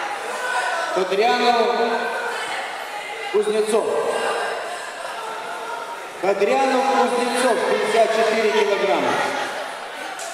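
A man calls out loudly in a big echoing hall.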